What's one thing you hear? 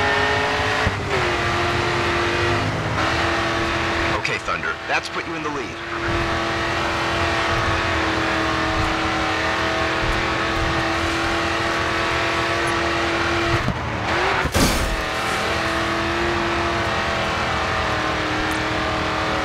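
A muscle car engine roars at high revs.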